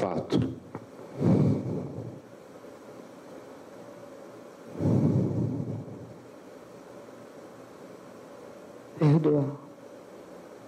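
A woman answers quietly into a microphone.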